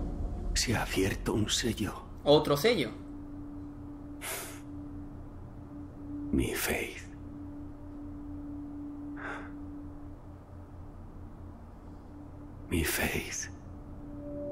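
A man speaks slowly and quietly in a low voice, with long pauses.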